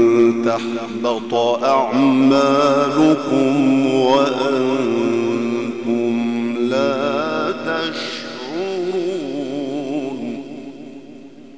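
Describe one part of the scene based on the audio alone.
A man chants in a long, wavering voice through a loud microphone, then falls silent as the echo fades.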